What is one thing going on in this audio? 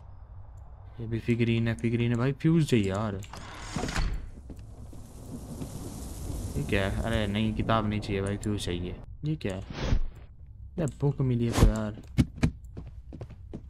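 A young man talks close to a microphone, with animation.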